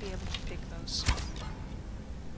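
An arrow is loosed from a bow with a sharp snap.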